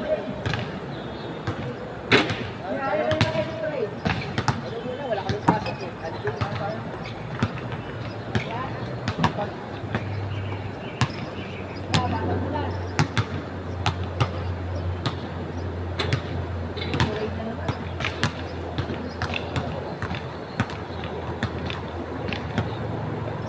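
Men call out to each other across an outdoor court.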